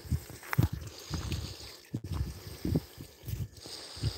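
Water laps and bubbles softly.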